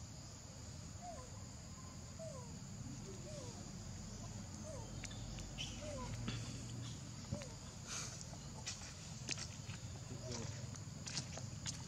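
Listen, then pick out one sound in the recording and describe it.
A baby monkey squeaks softly now and then.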